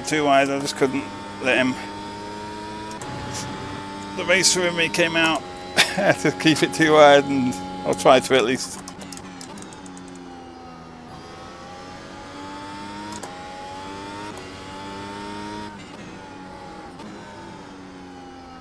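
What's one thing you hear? A racing car engine whines at high revs, rising and dropping as gears change.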